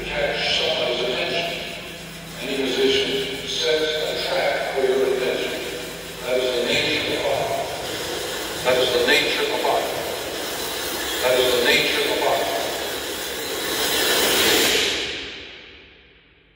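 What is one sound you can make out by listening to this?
A percussion ensemble plays pitched keyboard phrases with drums in a large echoing hall.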